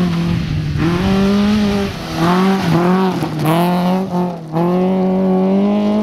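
Gravel crunches and sprays under a rally car's tyres.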